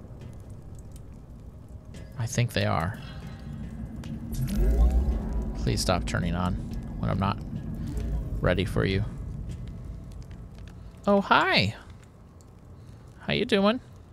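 A torch flame crackles and hisses close by.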